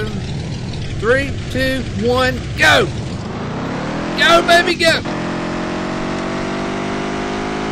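A truck engine hums and revs up as the truck speeds up.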